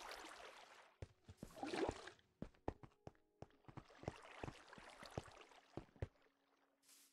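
Footsteps tap quickly on stone in a game.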